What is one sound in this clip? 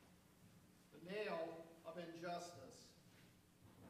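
A man speaks briefly in a quiet hall.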